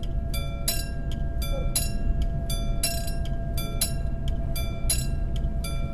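A train rumbles past.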